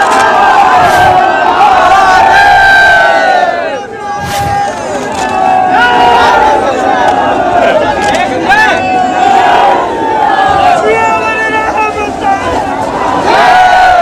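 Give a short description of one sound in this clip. A large crowd of men shouts and cheers loudly outdoors.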